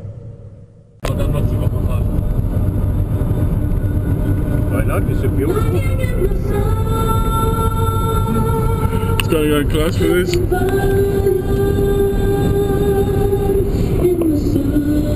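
A car drives along with a steady rumble of road noise.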